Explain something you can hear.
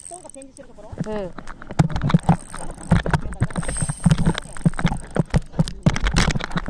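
A fishing reel's drag clicks rapidly as a fish pulls the line.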